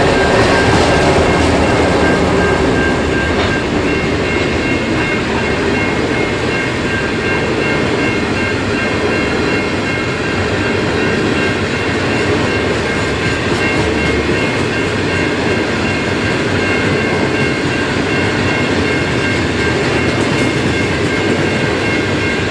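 Freight wagons clatter and rumble steadily over the rails.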